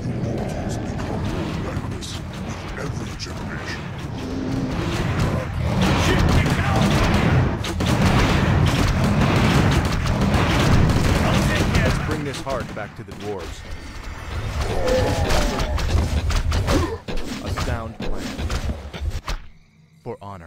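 Swords and weapons clash in a noisy battle.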